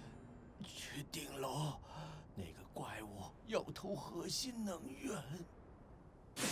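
A man speaks with urgency, close by.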